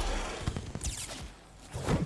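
Fireworks burst with crackling sparks.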